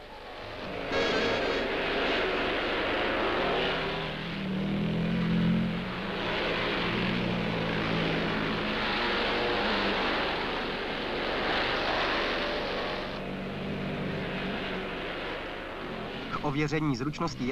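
Motorcycle engines roar and rev over a dirt track.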